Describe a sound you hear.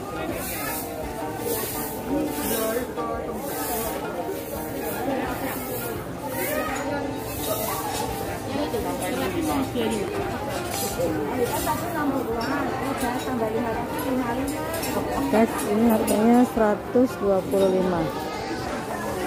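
A crowd of shoppers murmurs nearby.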